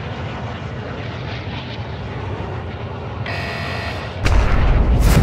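Large aircraft engines drone steadily.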